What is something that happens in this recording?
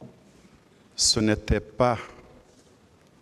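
A man speaks slowly and formally into a microphone.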